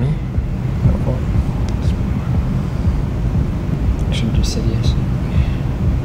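A second man answers briefly in a relaxed voice, close by.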